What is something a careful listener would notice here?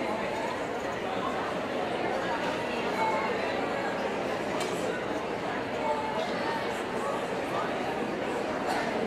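Many people chatter at once in a large echoing hall.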